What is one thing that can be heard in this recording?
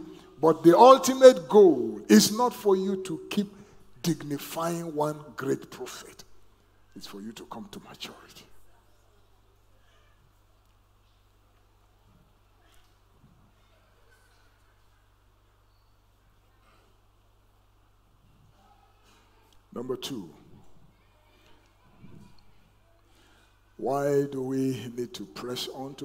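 A middle-aged man preaches with animation through a headset microphone.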